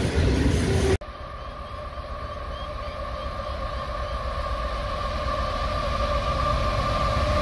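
A locomotive engine hums as it approaches, growing louder.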